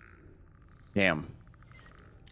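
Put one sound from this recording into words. A lockpick snaps with a sharp metallic crack.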